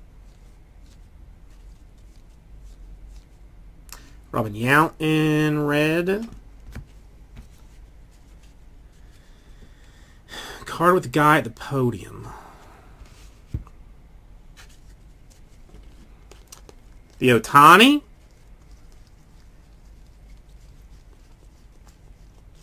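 Trading cards rustle and flick softly as they are sorted by hand.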